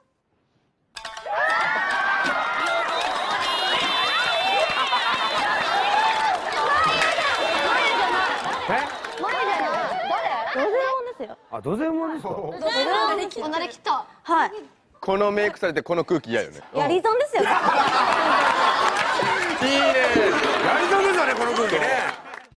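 A crowd of young women laugh and shriek loudly.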